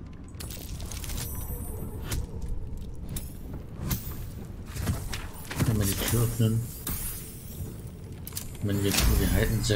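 Dice rattle and clatter as they roll.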